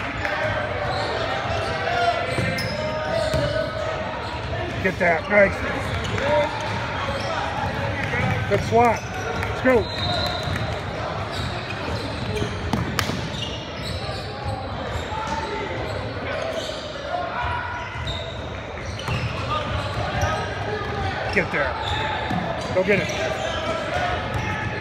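A basketball bounces on a court floor.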